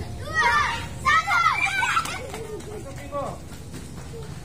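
Children shout and squeal excitedly nearby outdoors.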